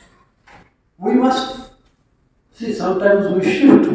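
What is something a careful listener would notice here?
A middle-aged man speaks into a microphone over loudspeakers in an echoing hall.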